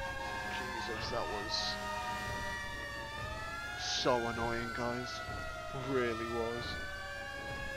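A fire engine horn blares in short blasts.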